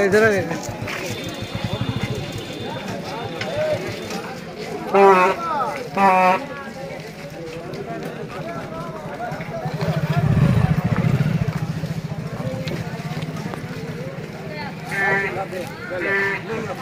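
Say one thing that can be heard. Several men shout loudly nearby.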